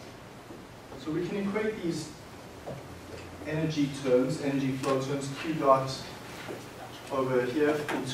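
A man lectures in a large echoing room, speaking clearly.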